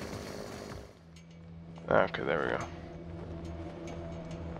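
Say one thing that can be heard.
A torn flag flaps in the wind.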